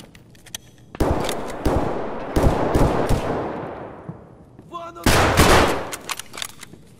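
A shotgun fires loudly and its boom echoes away.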